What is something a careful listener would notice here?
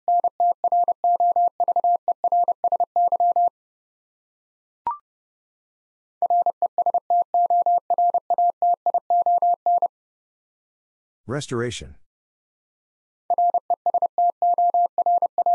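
A Morse code key taps out rapid high beeps.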